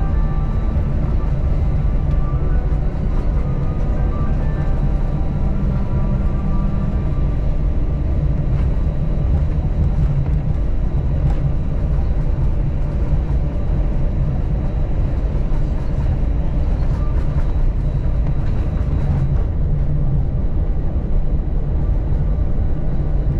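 An airplane rumbles as it rolls along a runway.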